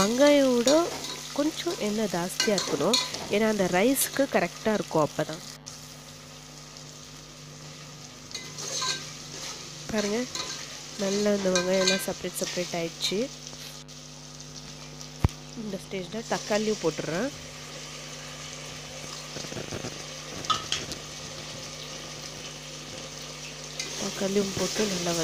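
A metal spoon scrapes and stirs food in a metal pot.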